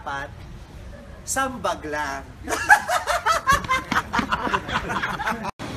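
A young woman talks loudly and excitedly close by, outdoors.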